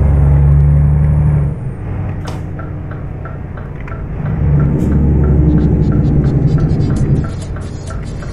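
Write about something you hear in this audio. A truck engine rumbles low and steady, swelling and easing.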